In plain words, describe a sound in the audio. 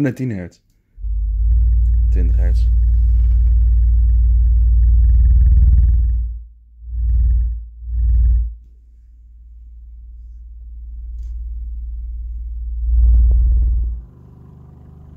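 A subwoofer plays a deep, loud bass hum in bursts.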